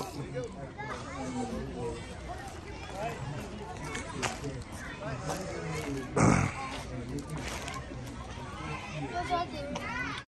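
Young children chatter and call out excitedly nearby.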